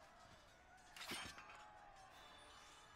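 A magic blast bursts with a bright whoosh.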